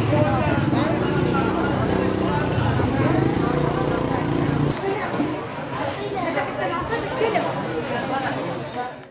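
A crowd of men and women chatter at once all around.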